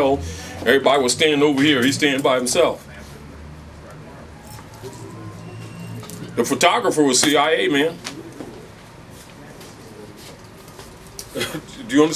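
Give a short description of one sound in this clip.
A man speaks with animation in bursts, close by.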